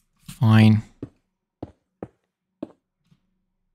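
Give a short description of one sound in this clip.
Stone blocks crumble with short, dry crunches.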